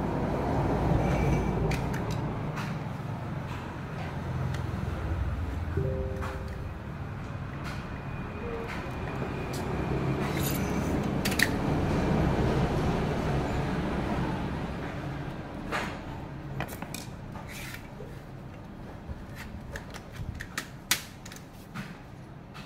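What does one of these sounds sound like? Plastic parts click and rattle as hands handle them.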